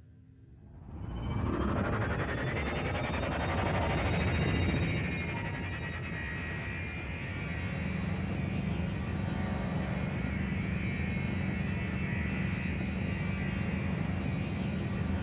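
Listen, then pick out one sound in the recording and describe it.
A spaceship's engines rumble and hum steadily.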